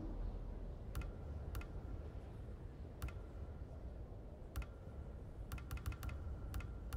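Short electronic menu ticks sound now and then.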